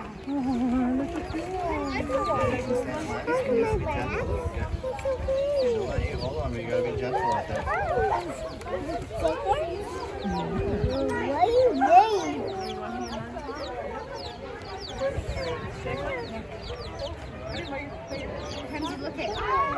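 Young children talk excitedly close by.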